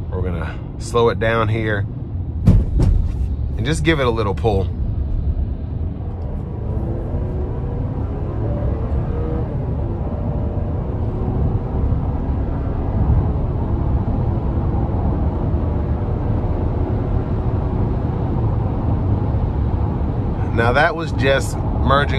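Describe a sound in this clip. Tyres roll with a steady low rumble on a highway.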